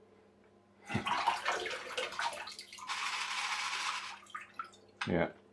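A toy boat's propeller churns bath water.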